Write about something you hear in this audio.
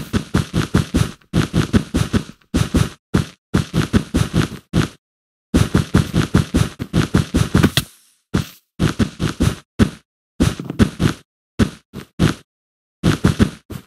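Blocks are placed one after another in quick, soft thuds.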